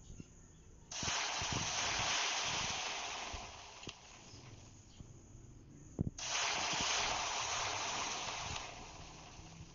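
Water hisses and sizzles as it pours onto hot lava.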